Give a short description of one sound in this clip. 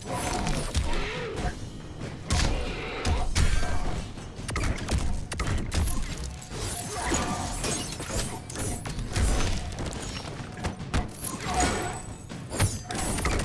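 Punches and kicks thud with sharp impacts in a fast fight.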